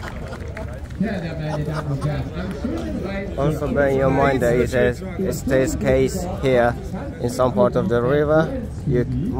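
A man talks close by, calmly.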